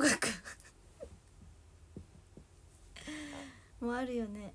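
A young woman laughs up close.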